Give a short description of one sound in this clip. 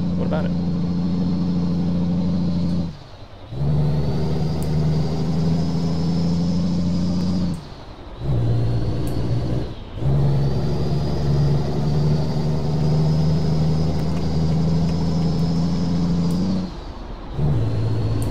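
A truck engine drones loudly, dipping briefly at each gear change and revving back up.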